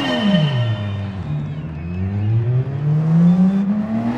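A racing car engine accelerates, climbing in pitch through the gears.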